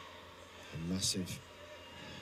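A kick lands with a sharp slap.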